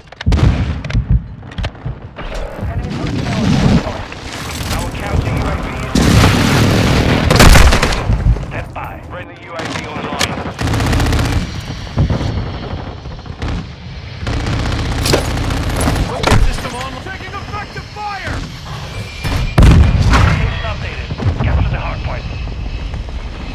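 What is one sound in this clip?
Rifle gunfire rattles in quick bursts.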